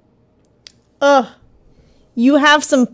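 A young woman speaks brightly through a microphone.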